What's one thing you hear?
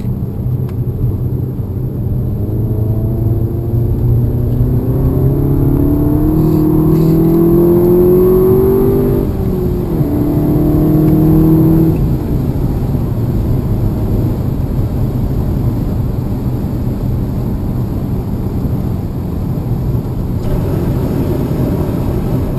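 Tyres and wind roar steadily as a vehicle drives along a road.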